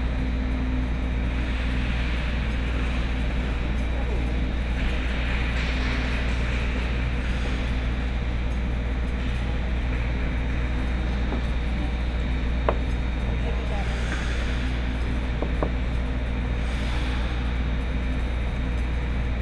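Skate blades scrape and hiss across ice.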